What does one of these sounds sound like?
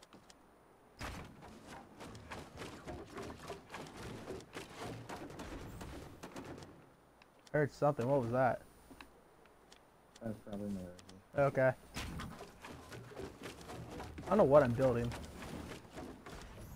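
Wooden panels clatter and knock into place again and again.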